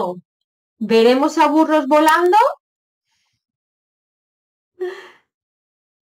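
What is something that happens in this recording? A woman speaks expressively, close to a microphone.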